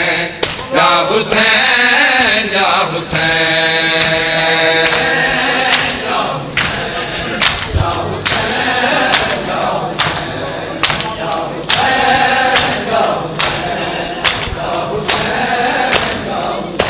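Many hands beat on chests in a steady rhythm, with loud slaps.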